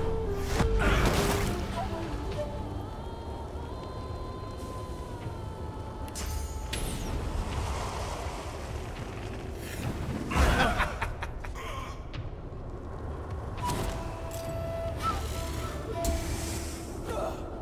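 Fiery explosions burst and roar.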